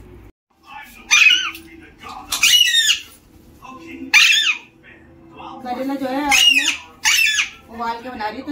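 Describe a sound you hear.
A parrot squawks loudly and shrilly nearby.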